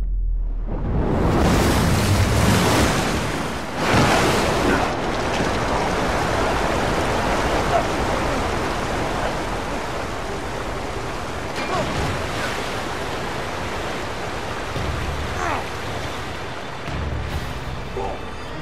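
Water rushes and crashes loudly.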